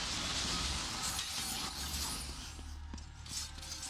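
Chained blades whoosh through the air in a fight.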